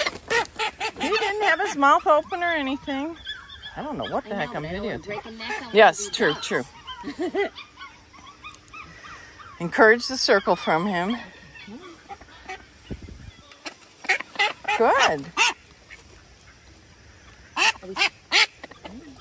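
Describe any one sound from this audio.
Ducks quack loudly and repeatedly nearby.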